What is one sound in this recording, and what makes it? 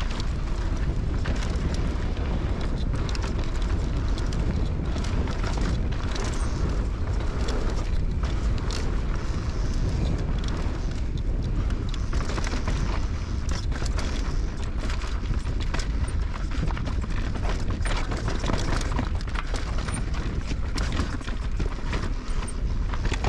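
Bike tyres crunch and rattle over dirt and rocks.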